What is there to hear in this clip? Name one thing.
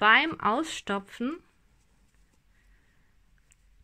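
Soft stuffing rustles faintly as hands press it into a crocheted ball.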